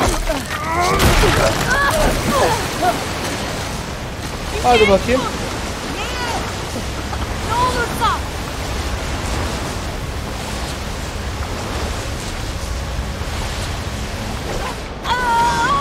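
Water rushes and roars loudly.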